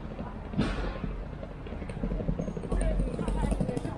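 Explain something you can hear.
Footsteps of passers-by tap on paving stones nearby.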